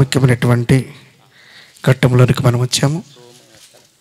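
A man speaks loudly with animation into a microphone over loudspeakers.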